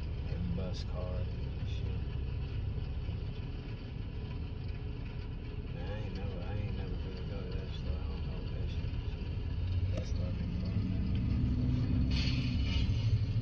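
A car engine idles with a low, steady rumble, heard from inside the car.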